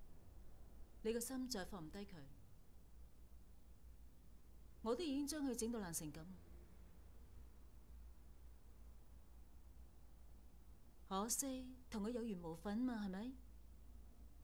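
A young woman speaks quietly and tensely, close by.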